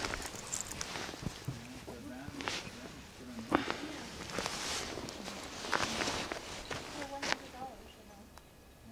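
A hand rubs and scratches through a dog's thick fur.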